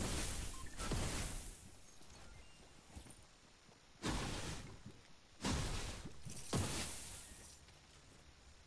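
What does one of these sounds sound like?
A pickaxe strikes wood with loud sharp thuds.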